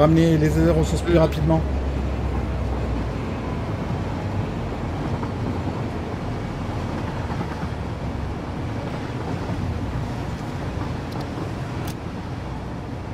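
A train engine rumbles steadily while rolling along.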